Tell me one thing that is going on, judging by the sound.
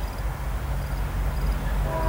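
A cement mixer truck drives by.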